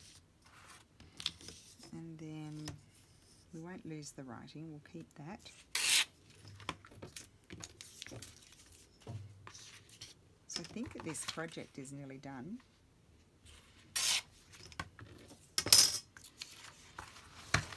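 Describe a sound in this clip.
Stiff paper rustles and slides as hands handle it.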